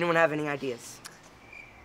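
A teenage boy talks with animation nearby.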